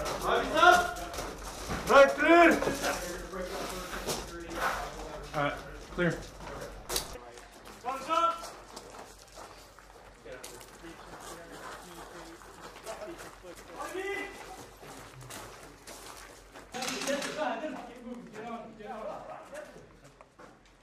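Men shout short commands nearby.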